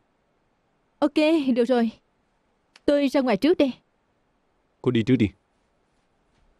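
A young woman answers in a tired, resigned voice.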